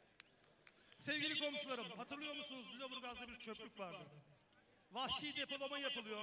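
A man speaks forcefully through loudspeakers, echoing outdoors.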